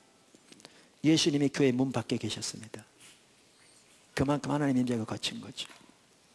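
An elderly man speaks calmly through a microphone, in short phrases.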